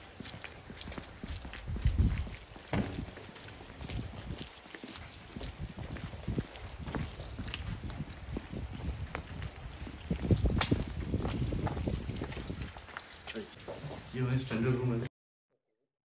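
Footsteps scuff on a paved path outdoors.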